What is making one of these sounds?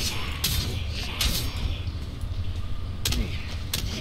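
A sword strikes with a dull thud.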